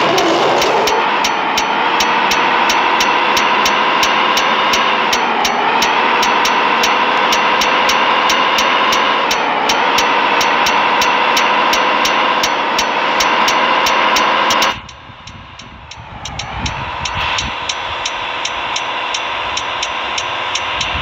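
A truck engine drones steadily, dipping briefly in pitch as it shifts gears.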